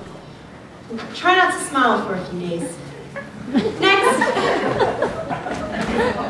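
A young man speaks with animation, heard from a distance in a hall.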